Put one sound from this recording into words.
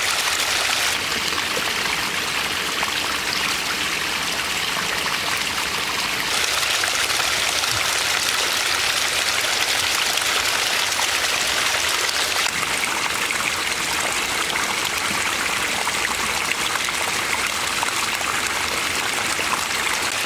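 A small stream of water trickles and splashes over rocks close by.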